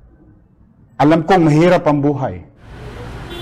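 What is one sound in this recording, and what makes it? A man speaks clearly into a microphone.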